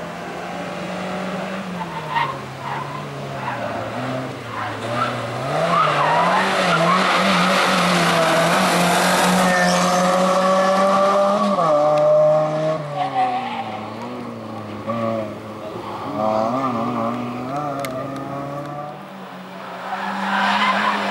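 A rally car engine roars loudly and revs up and down as the car accelerates and brakes through the turns.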